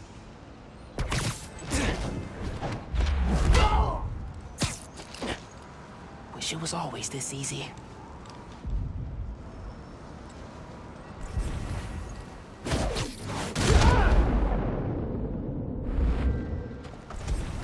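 Heavy punches and thuds land in a scuffle.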